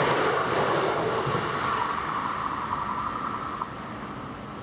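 A level crossing bell rings steadily.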